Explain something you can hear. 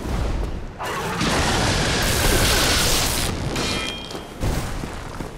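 Lightning crackles and roars in a loud burst.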